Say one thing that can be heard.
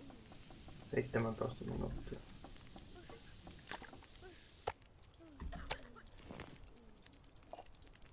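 A fire crackles softly in a stove.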